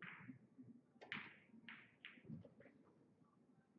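Pool balls clack against each other.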